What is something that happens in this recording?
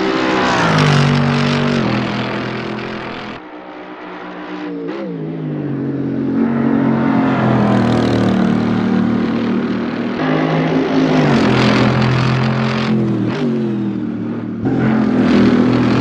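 A racing car engine roars loudly, revving up and down through gear changes.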